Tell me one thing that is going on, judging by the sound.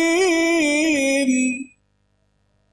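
A man chants in a drawn-out, melodic voice through a microphone and loudspeakers.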